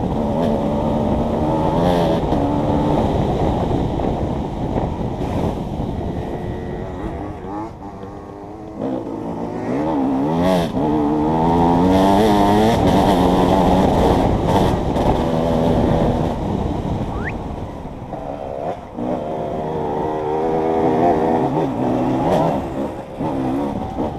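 A dirt bike engine revs up and down loudly close by.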